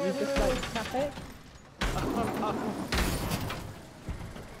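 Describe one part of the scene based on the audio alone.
A car crashes and tumbles with loud metallic bangs.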